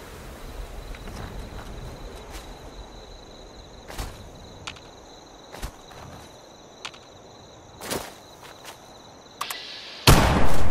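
Footsteps crunch through grass and dry leaves.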